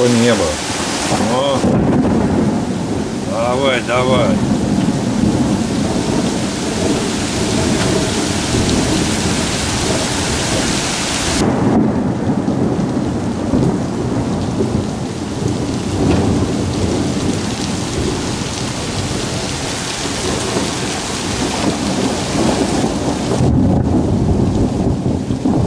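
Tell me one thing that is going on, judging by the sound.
Wind rushes through leafy trees.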